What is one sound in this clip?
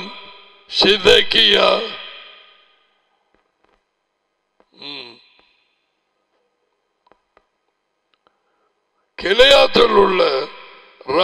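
A middle-aged man speaks slowly in short phrases into a close microphone, with a long echo trailing after each phrase.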